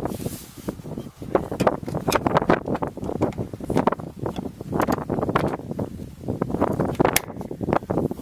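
Clips on a plastic air filter box snap open.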